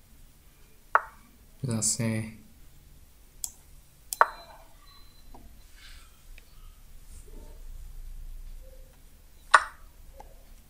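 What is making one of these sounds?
A chess piece clicks sharply onto a board.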